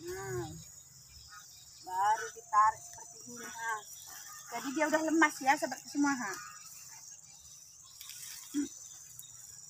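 Large banana leaves rustle as they are handled.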